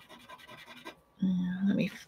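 A pointed tool scratches lightly over paper.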